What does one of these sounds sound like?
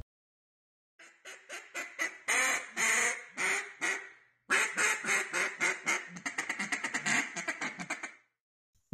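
A large flock of birds calls loudly overhead.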